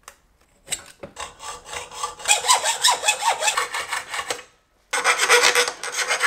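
A hand tool cuts with rapid, repeated clicks.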